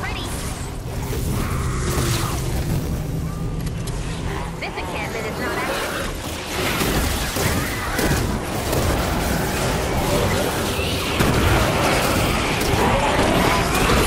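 A game character swings a melee weapon with whooshing strikes.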